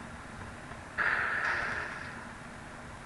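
A bomb explodes with a short, noisy burst.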